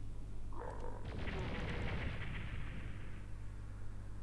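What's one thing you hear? A fireball explodes with a loud roar that slowly fades.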